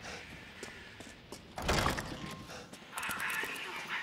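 A heavy wooden door bangs open.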